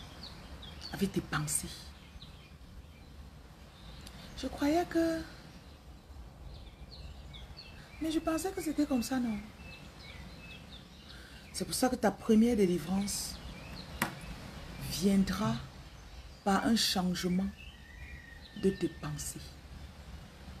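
A woman speaks calmly and close up, in short phrases with pauses.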